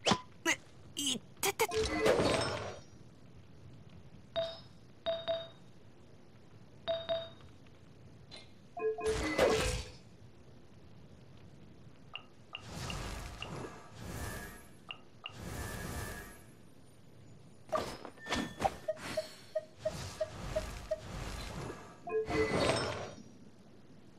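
Short bright chimes ring as game menu items are picked.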